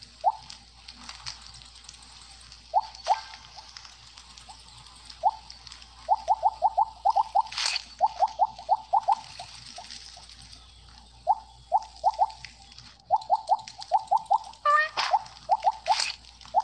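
Short bright electronic game blips chirp in quick runs.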